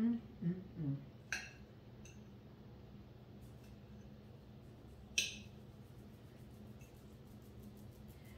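A fork scrapes against a plate.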